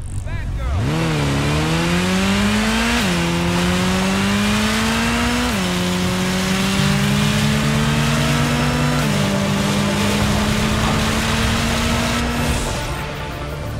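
A motorcycle engine revs up and roars, shifting gears as it speeds along.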